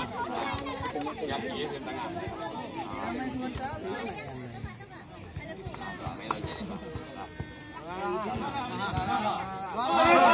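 A man talks up close with animation to a group of young men.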